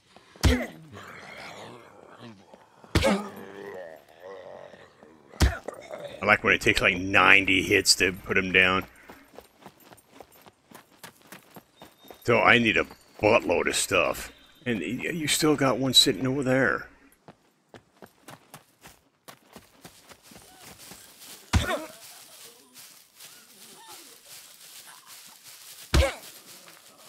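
An axe strikes a body with heavy thuds.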